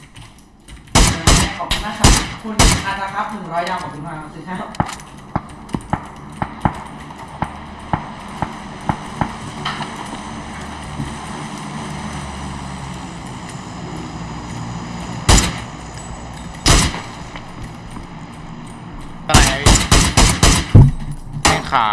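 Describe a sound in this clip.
Rifle shots crack sharply, some in quick bursts.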